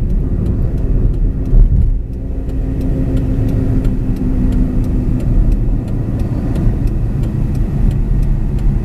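Tyres roll on the road.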